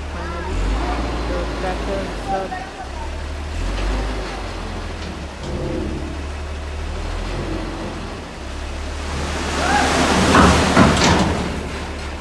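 Men talk loudly outdoors.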